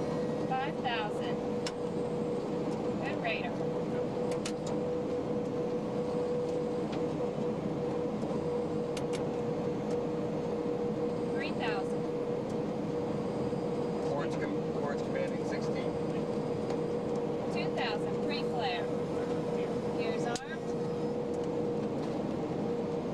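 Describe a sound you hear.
An aircraft engine drones steadily with a constant hum.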